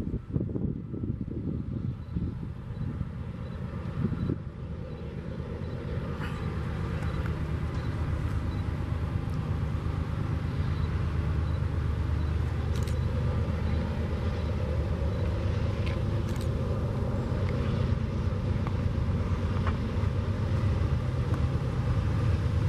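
Freight wagons clatter over the rails.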